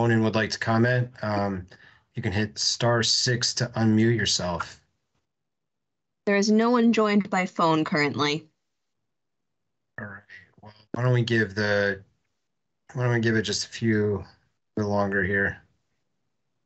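A man speaks calmly over an online call, in short phrases with pauses.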